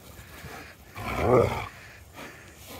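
A dog growls playfully up close.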